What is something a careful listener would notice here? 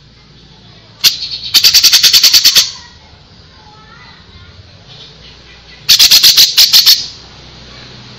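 A songbird sings rapid, sharp bursts of chirps, close by.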